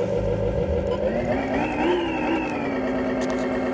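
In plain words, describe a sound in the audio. A simulated diesel truck engine revs up briefly and settles back from a small loudspeaker.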